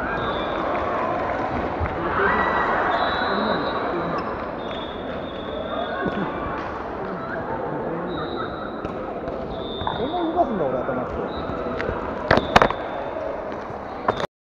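A crowd chatters and calls out across a large echoing hall.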